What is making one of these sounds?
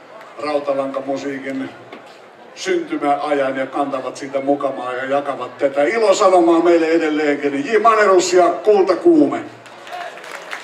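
A man sings loudly and with feeling into a microphone, amplified over loudspeakers.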